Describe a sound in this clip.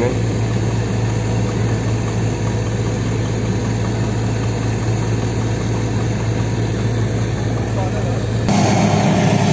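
Muddy water gushes and splashes from a drill pipe.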